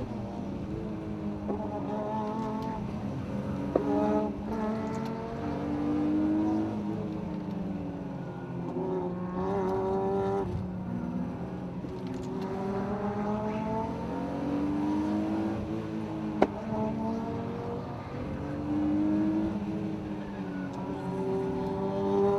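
A sports car's engine revs up and down hard, heard from inside the car.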